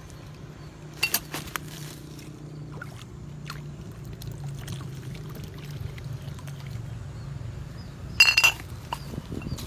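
Glass bottles clink against each other.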